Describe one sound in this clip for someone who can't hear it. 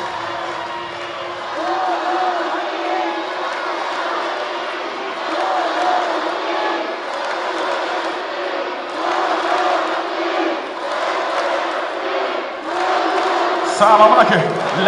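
A large crowd chants rhythmically in a big echoing arena.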